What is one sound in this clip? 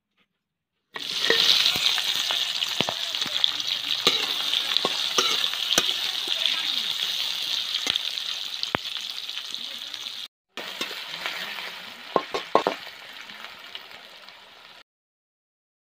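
Sliced onions sizzle in hot oil in a wok.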